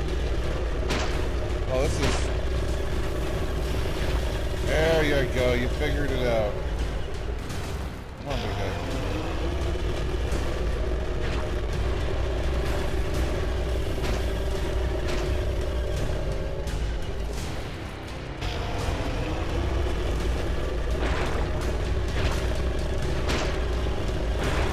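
Sharp blaster shots crackle now and then.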